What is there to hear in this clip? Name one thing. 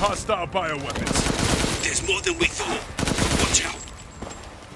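A rifle fires several rapid shots.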